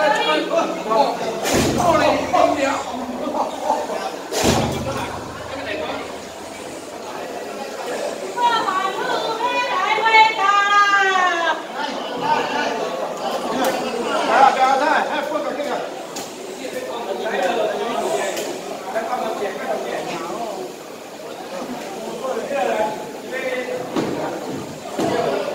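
A crowd of people talk and call out all around in a busy, echoing space.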